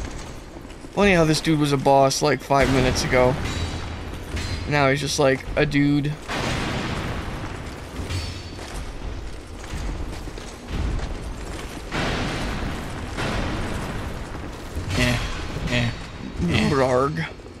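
A second man answers with animation over a headset microphone.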